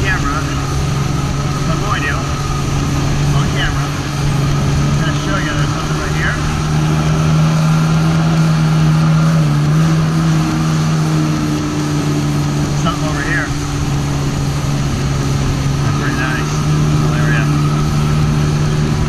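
A jet ski engine drones steadily up close.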